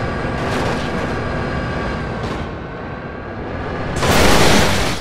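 A train engine rumbles along the tracks.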